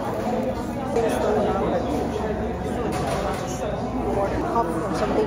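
Many people chatter nearby in a busy, echoing room.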